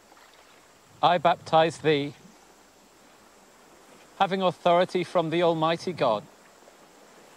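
A man speaks solemnly and clearly, close by, in two short phrases.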